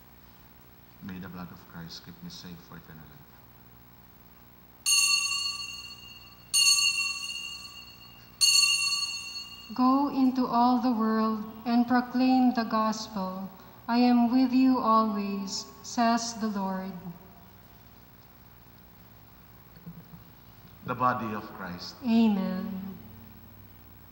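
A man sings and chants slowly through a microphone in a large echoing hall.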